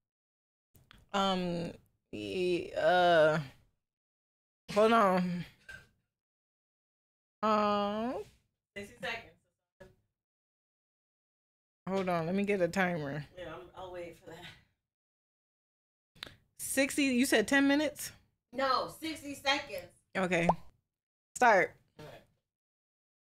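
A young woman talks close to a microphone, with animation and pauses.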